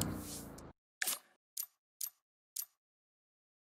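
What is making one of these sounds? Short interface blips sound one after another.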